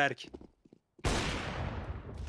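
A sniper rifle fires once with a loud crack that rings out.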